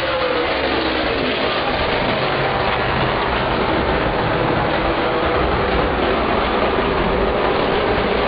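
Racing car engines roar loudly as the cars speed past.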